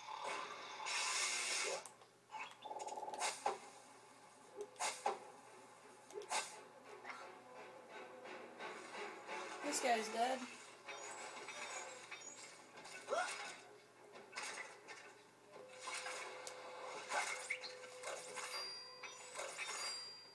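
Video game sound effects and music play from a television's speakers.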